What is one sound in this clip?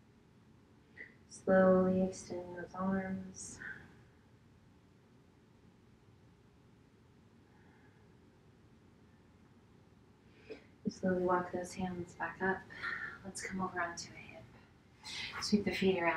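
A woman speaks calmly and softly into a nearby microphone, pausing between phrases.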